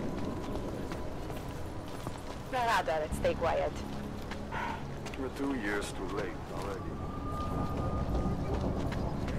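Footsteps tread on cobblestones.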